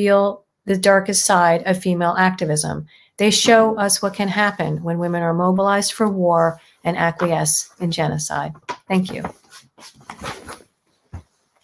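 A woman speaks calmly through an online call microphone.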